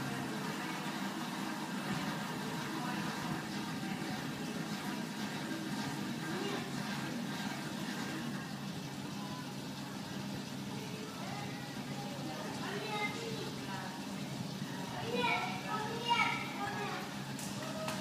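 Water bubbles and trickles steadily in a tank.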